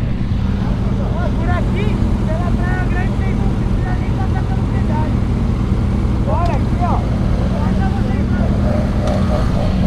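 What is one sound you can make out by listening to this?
A man talks loudly nearby over the engines.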